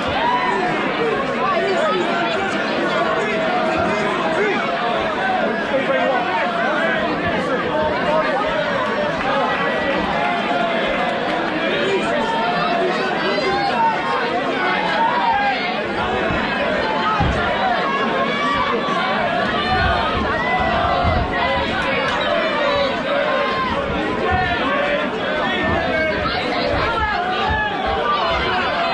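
A crowd chatters and talks loudly throughout, in a large echoing hall.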